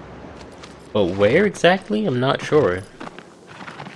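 A horse neighs loudly.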